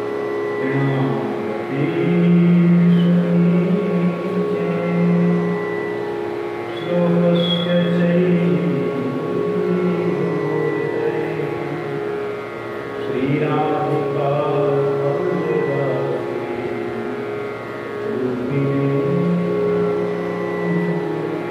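An elderly man sings slowly in a low voice.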